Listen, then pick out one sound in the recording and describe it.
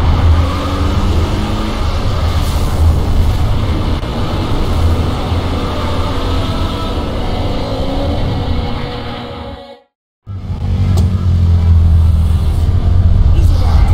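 A car engine hums as a car drives along a street.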